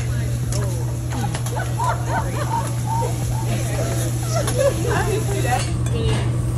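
Young women chat and laugh nearby.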